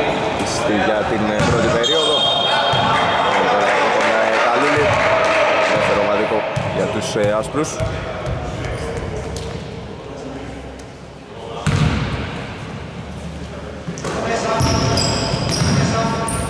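Men shout and call out across the court.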